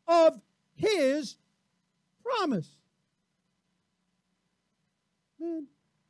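A middle-aged man speaks in short, measured phrases, with pauses between them.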